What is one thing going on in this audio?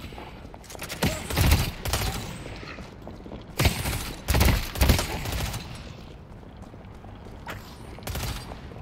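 A game character's pistol fires in sharp bursts.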